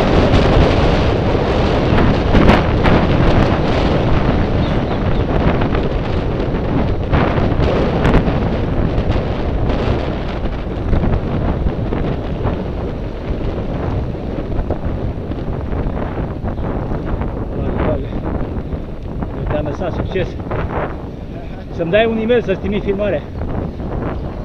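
Wind rushes steadily past while cycling outdoors.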